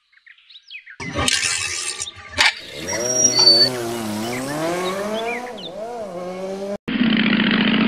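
A motorcycle engine starts and revs.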